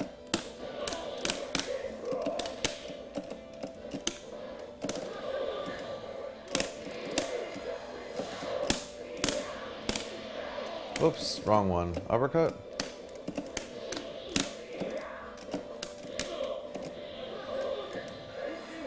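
Arcade buttons clack rapidly under quick fingers.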